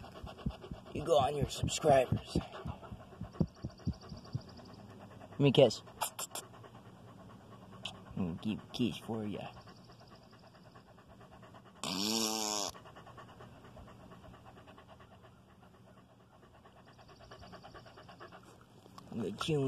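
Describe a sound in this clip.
A woman speaks softly to a dog close by.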